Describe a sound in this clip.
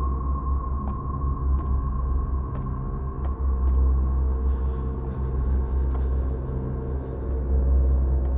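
A man's footsteps tread slowly across a floor.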